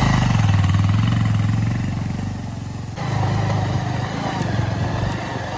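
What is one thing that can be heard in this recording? Tyres crunch over loose gravel.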